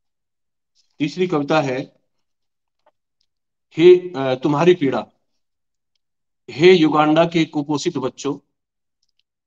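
A middle-aged man speaks calmly over an online call, in short bursts with pauses.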